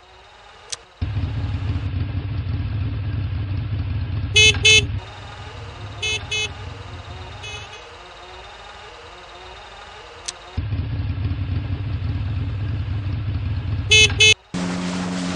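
A small motor scooter engine hums steadily.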